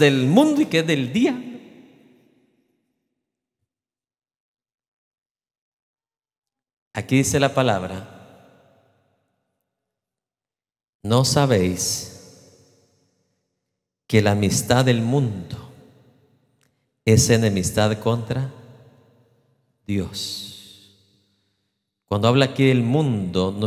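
A man speaks with animation through a microphone in a large echoing hall.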